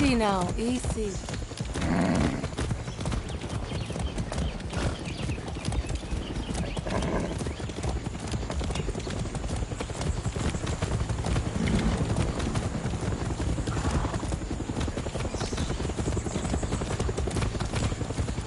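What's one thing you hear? Hooves trot steadily on a dirt path.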